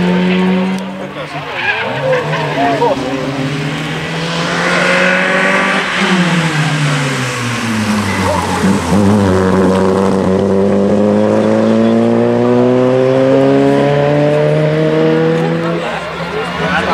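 A rally car engine revs hard and roars past, rising and falling in pitch.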